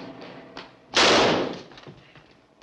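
A gunshot cracks loudly once.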